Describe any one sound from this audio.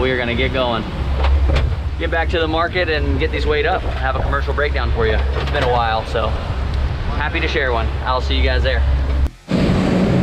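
A man talks with animation close to the microphone.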